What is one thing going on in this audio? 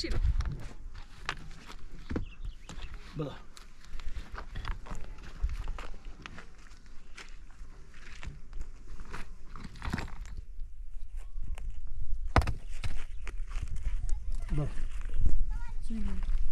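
Stones knock and scrape against each other as they are placed.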